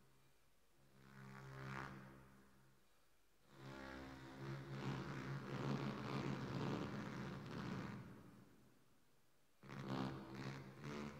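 Electronic music with droning, swelling tones plays in bursts.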